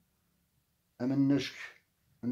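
An elderly man speaks close to the microphone.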